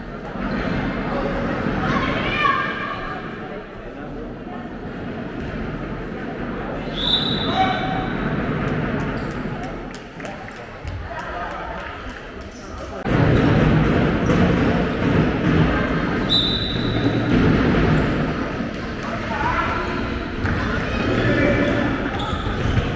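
People shout and call out in a large echoing hall.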